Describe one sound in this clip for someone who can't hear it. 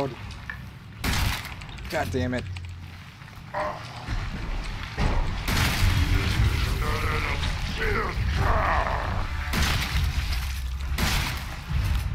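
A shotgun fires loud, echoing blasts.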